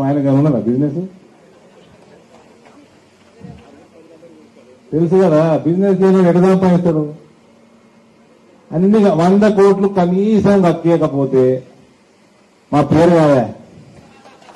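A man speaks loudly and forcefully into a microphone over a loudspeaker, outdoors.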